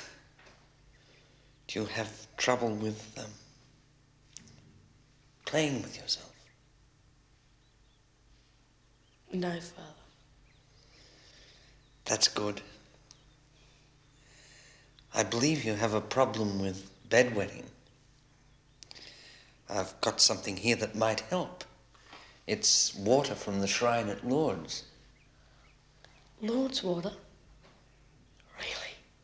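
A boy answers briefly in a quiet voice.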